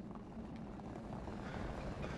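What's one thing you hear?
Tyres roll along a road.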